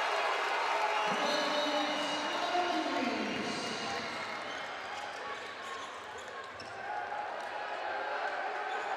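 Sports shoes squeak on an indoor court.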